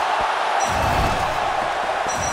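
A heavy kick lands with a deep thud.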